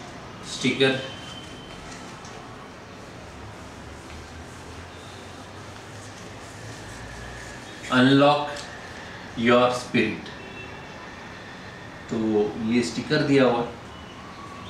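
A man speaks calmly and clearly, close by, in short phrases.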